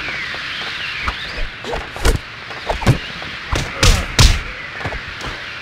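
Blows land with sharp thuds during a fight.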